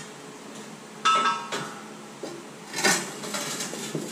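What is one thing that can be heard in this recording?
Metal clangs sharply against metal.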